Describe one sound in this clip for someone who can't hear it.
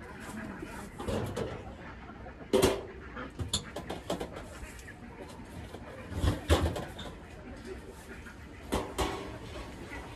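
Objects knock and clatter close by.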